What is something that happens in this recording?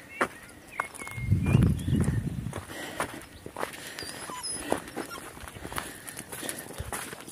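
Footsteps crunch on dry gravel and stones.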